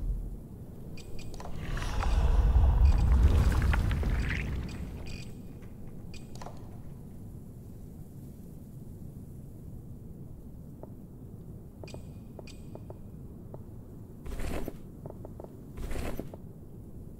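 Soft menu clicks and chimes sound as items are selected.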